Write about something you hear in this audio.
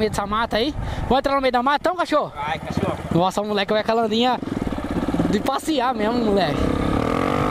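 A single-cylinder four-stroke trail motorcycle revs up and down.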